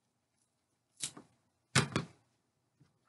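Scissors snip through twine.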